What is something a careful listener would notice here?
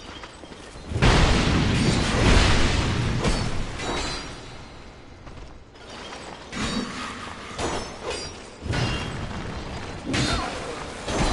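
Heavy blades clash and strike armour with loud metallic impacts.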